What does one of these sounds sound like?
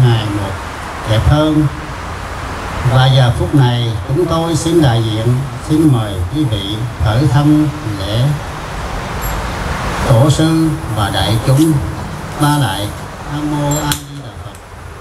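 An elderly man chants into a microphone, his voice carried over loudspeakers.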